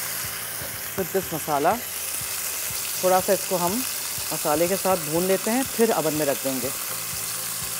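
A woman speaks with animation into a nearby microphone.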